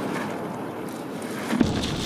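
Gravel clatters as it is tipped onto a pile.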